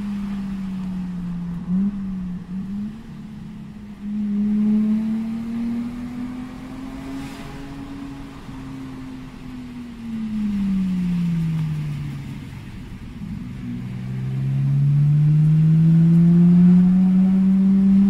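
A car engine hums from inside the cabin, rising and falling in pitch as the car speeds up and slows down.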